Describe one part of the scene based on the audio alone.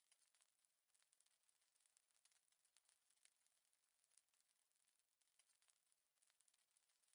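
Cartoon characters' feet patter quickly on a floor.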